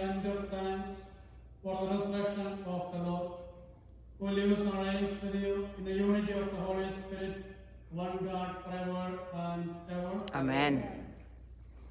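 A man chants in a sung voice, echoing in a large hall.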